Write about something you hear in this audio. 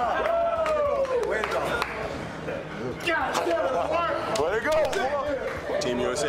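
Several men shout and cheer excitedly close by.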